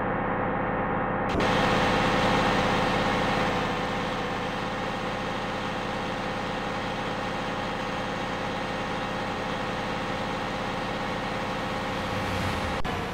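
A bus engine hums steadily as it drives.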